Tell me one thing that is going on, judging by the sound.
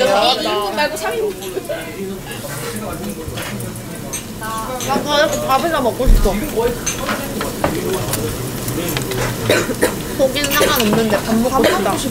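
Chopsticks and utensils clink against dishes.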